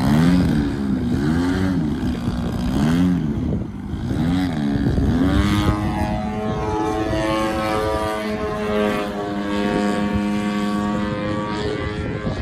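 A model airplane's engine buzzes loudly, its pitch rising and falling as it swoops overhead.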